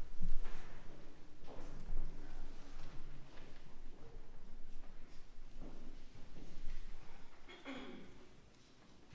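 An organ plays softly.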